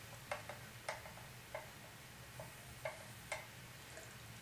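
A spoon clinks against a plastic bottle.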